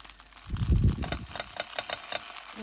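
A spoon scrapes against a frying pan.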